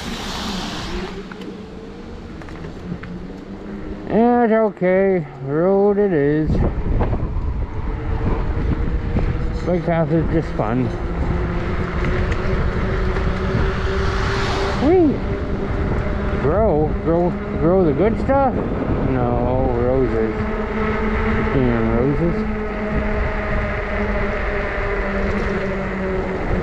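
A motor vehicle engine drones steadily while riding along a road.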